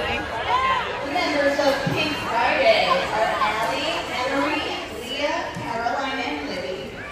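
Young girls sing together through loudspeakers in an echoing hall.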